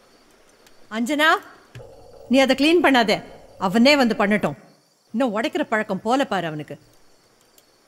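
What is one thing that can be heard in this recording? A middle-aged woman speaks calmly and with emotion.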